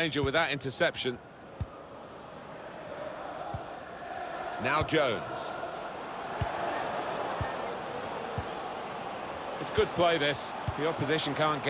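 A stadium crowd murmurs and swells steadily.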